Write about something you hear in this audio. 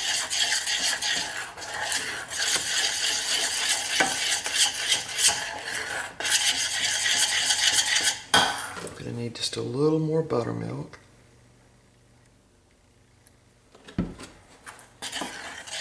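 A spoon scrapes and stirs in a metal pan.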